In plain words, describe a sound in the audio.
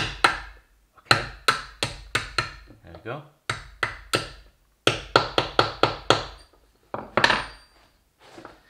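A hammer strikes a metal punch in quick, ringing taps.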